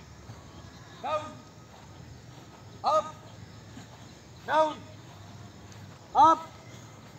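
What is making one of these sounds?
A man shouts short, loud commands at a steady pace.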